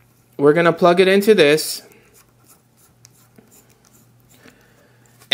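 A small metal connector clicks and scrapes as it is screwed onto a fitting.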